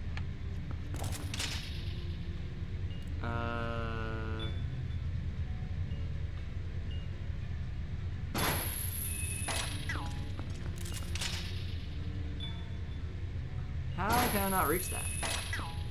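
Short chiming and swishing effects sound from a fantasy video game.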